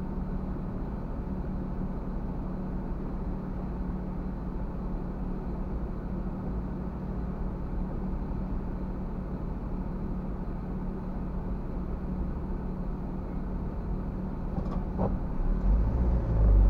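A car engine idles with a steady low hum.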